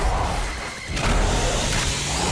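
Flesh squelches and tears in a brutal melee strike.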